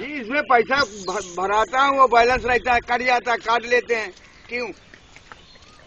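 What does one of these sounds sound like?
An elderly man chants loudly in a long, wavering call nearby.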